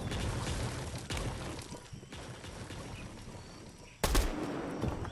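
A gunshot cracks.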